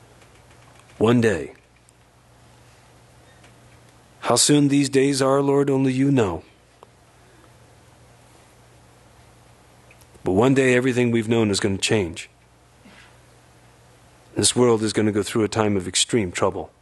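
A man sings into a microphone in short phrases with pauses between them.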